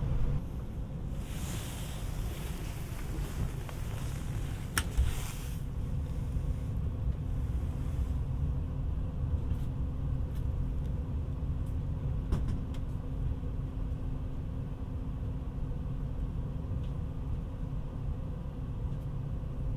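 A train interior hums with a low, steady rumble.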